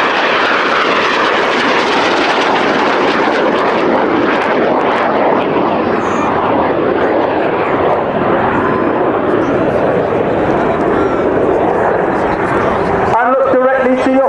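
A jet engine roars loudly overhead.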